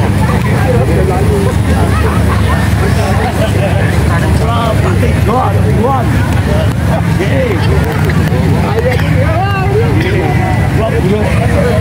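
A large crowd of men, women and children chatters outdoors.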